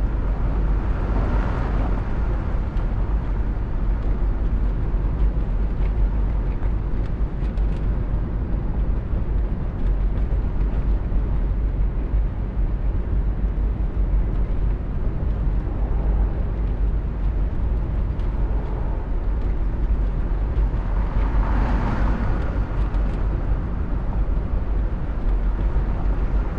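Tyres roll steadily on a highway.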